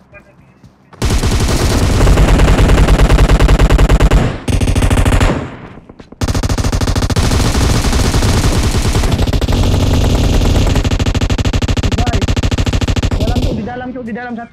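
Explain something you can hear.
Rapid gunfire from a game rattles loudly through a phone's speaker.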